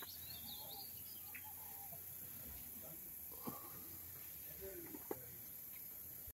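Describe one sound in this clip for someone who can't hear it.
Cattle hooves knock on stone paving.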